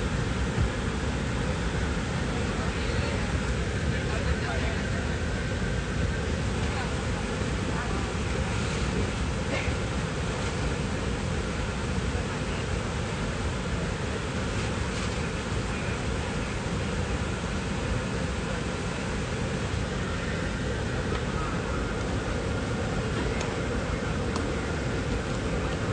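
A steady low roar of an aircraft cabin drones throughout.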